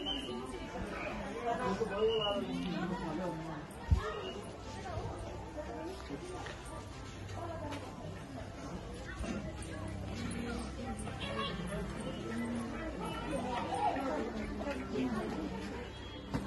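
Footsteps shuffle along a walkway.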